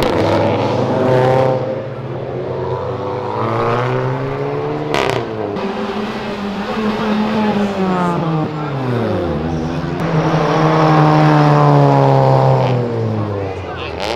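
Car engines rev loudly, rising and falling in pitch as cars pass close by.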